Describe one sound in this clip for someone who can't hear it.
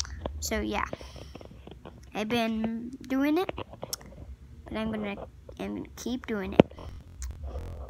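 A young boy speaks with animation close to a phone microphone.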